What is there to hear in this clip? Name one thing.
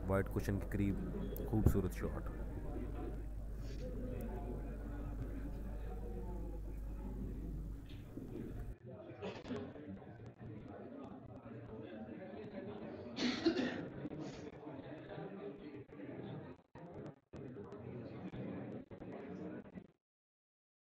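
A crowd of men murmurs and chatters nearby in a room.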